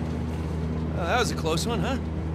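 A young man speaks casually.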